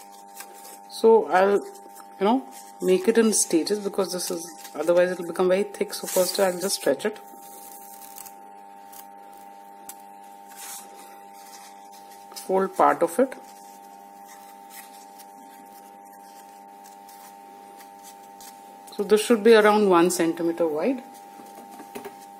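Paper rustles and crinkles softly as it is folded.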